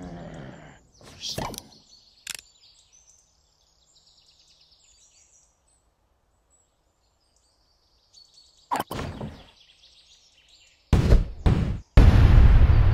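Short game sound effects chime and whoosh.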